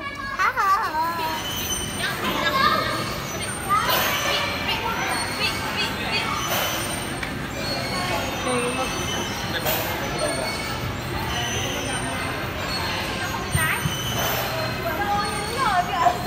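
A coin-operated kiddie ride plays electronic music.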